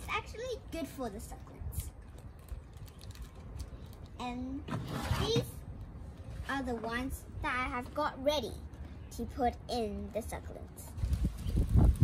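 A young girl speaks close by, calmly.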